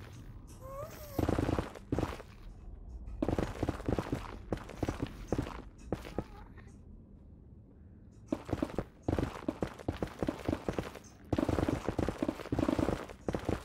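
A pickaxe chips rapidly at rock in quick repeated knocks.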